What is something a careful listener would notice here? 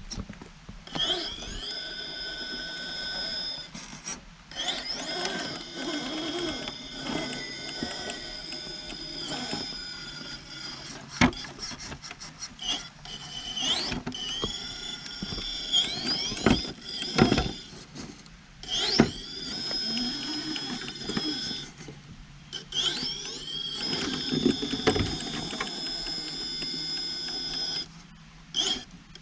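A small electric motor whines, rising and falling in pitch as it speeds up and slows.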